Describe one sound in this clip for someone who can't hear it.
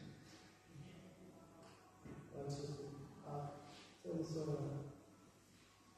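An elderly man speaks calmly into a microphone in a room with a slight echo.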